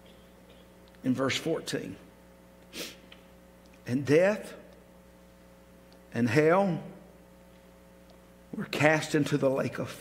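An older man speaks slowly and solemnly through a microphone, with pauses between phrases.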